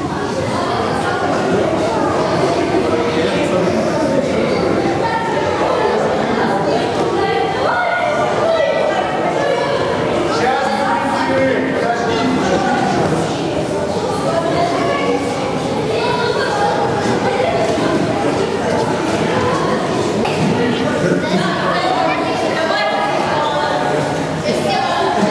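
Many children chatter and call out at once in a large echoing hall.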